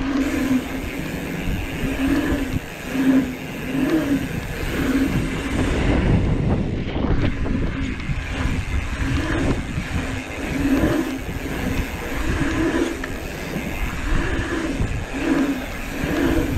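Wind buffets past, rushing steadily.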